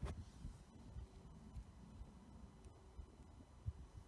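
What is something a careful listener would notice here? A bare hand rustles through crumbly soil.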